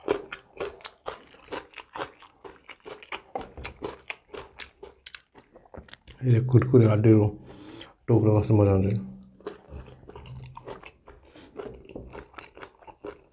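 A man tears and squishes saucy meat with his fingers close up.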